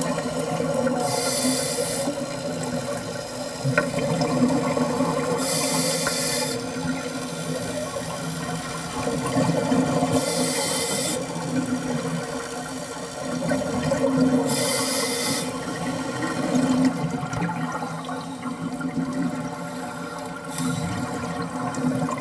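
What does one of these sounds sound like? Air bubbles gush out in loud hissing bursts every few seconds.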